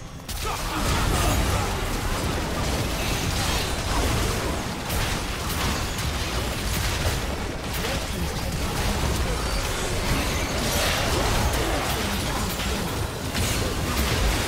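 Magic spells blast and crackle in a fast fantasy battle.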